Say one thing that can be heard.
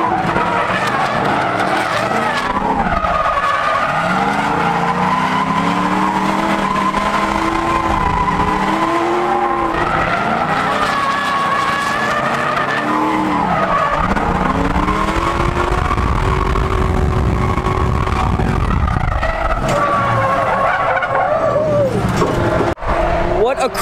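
A car engine revs hard and its pitch rises and falls.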